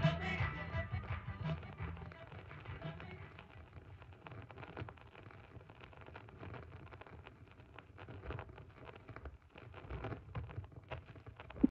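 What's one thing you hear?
Music with a beat plays from a spinning vinyl record.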